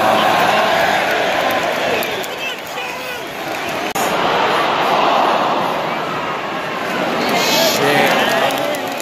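A stadium crowd roars and chants loudly.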